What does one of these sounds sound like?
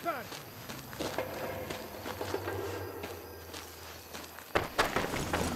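Clothing and gear rustle as a person crawls through grass.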